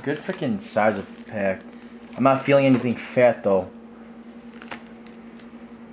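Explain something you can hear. Trading cards rustle and slide as hands shuffle through them.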